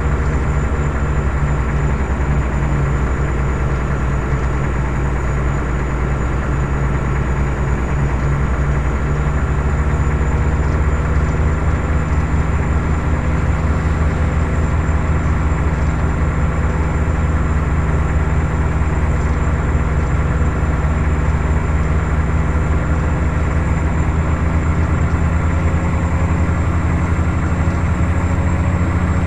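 A truck engine rumbles steadily while driving.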